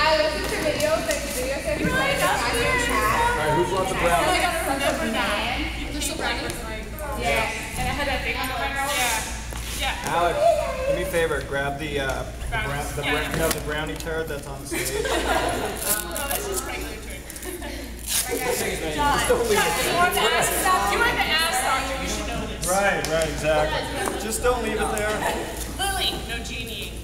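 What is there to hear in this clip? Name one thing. Several young people talk and chatter close by in a large echoing hall.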